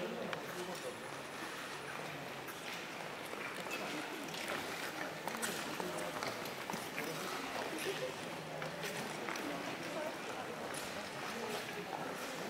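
Ice skate blades scrape and hiss across the ice in a large echoing hall.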